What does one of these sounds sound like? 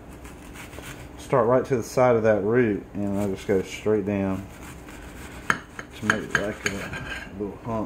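A knife slices through an onion on a plate.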